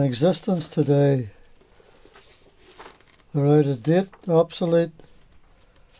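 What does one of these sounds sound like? Book pages rustle and flap as they are turned.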